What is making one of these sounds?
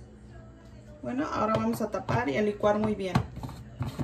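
A lid is screwed onto a plastic cup.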